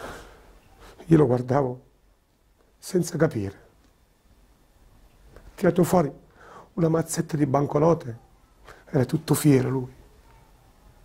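A middle-aged man speaks slowly and with emotion, close by, with long pauses.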